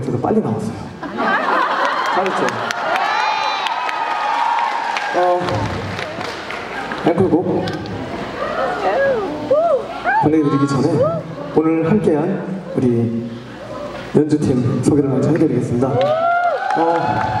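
A young man talks into a microphone over loudspeakers in a large echoing hall.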